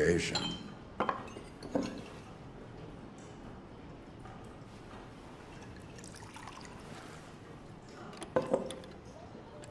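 Glass bottles clink against each other.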